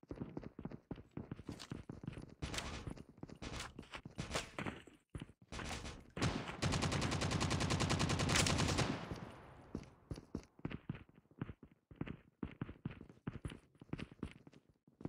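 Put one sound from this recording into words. Footsteps sound in a video game.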